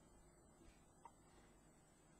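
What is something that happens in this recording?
A small plastic part clicks softly into place.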